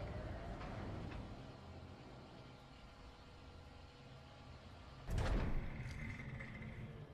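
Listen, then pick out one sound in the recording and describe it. A crane's machinery hums steadily.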